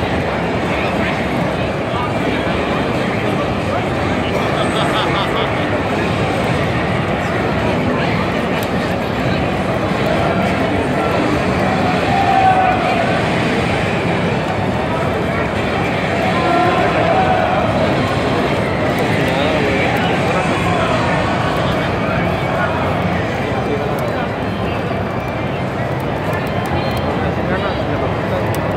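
Fast electronic game music plays through a loudspeaker.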